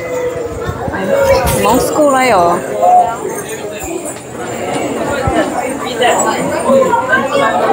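Several adults talk with one another nearby in a busy, echoing hall.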